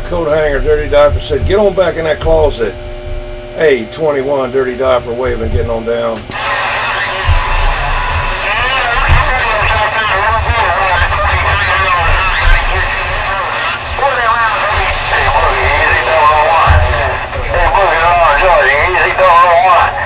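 A radio receiver hisses with static as a signal fades in and out.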